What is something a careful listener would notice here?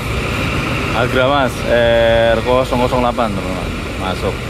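A bus horn plays a loud musical tune nearby.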